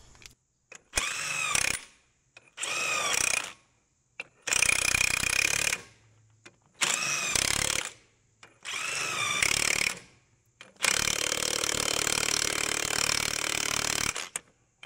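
A cordless impact wrench whirs and hammers in short bursts on wheel nuts.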